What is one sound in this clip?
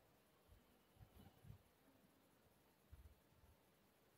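A knife cuts into a soft sweet in a metal tin, tapping and scraping lightly.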